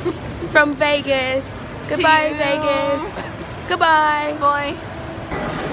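A young woman talks excitedly, close up.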